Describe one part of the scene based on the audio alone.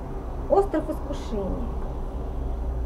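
A woman speaks briefly and softly, close to a microphone.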